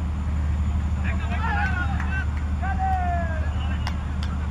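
Men shout outdoors from a distance.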